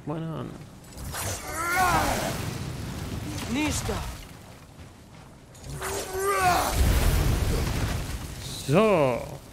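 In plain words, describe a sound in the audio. Fire bursts up and roars.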